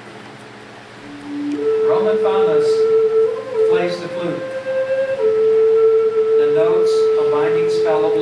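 A man plays a tune on a wooden flute in a room with some echo.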